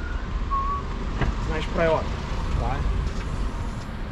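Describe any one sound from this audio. A car boot clicks open.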